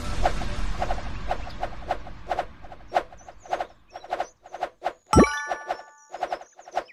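Rapid game punch effects thump in a quick, steady rhythm.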